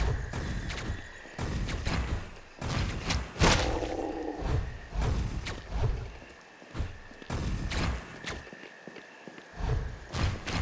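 Sharp electronic slashing and blasting effects of a game burst out in quick succession.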